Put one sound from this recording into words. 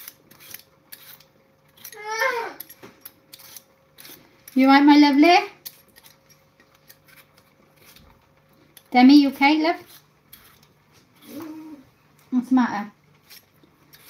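A peeler scrapes the skin off a potato in quick short strokes.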